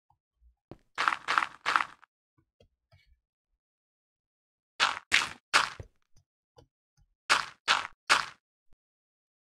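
Game blocks crunch as they are dug out, in quick groups of three.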